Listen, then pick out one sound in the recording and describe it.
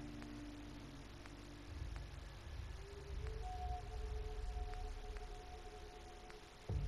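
Soft electronic clicks tick now and then as menu entries are selected.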